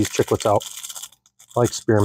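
A candy wrapper crinkles as it is peeled open.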